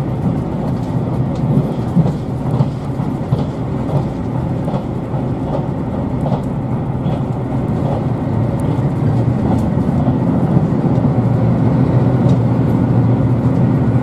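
A train rumbles steadily along the tracks, heard from inside a carriage, growing a little louder.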